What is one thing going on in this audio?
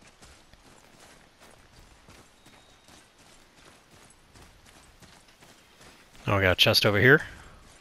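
Heavy footsteps crunch steadily over dirt and leaves.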